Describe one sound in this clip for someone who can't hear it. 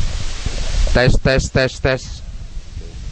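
A teenage girl speaks brightly close by.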